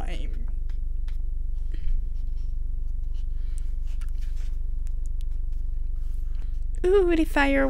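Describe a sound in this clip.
Glossy book pages rustle as they are turned.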